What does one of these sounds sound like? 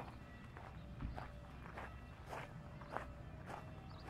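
Footsteps scuff on a paved path outdoors.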